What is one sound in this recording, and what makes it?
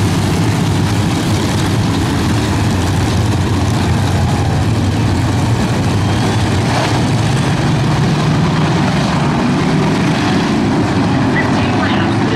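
Tyres rumble over a dirt track.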